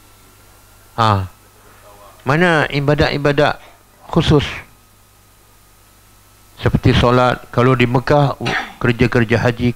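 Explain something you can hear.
A middle-aged man speaks calmly through a headset microphone, with pauses.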